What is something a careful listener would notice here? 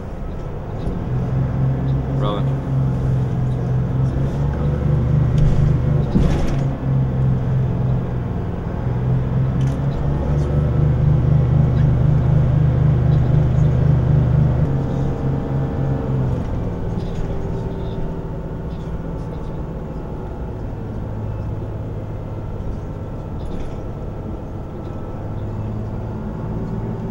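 Clicks and rattles sound inside the moving bus.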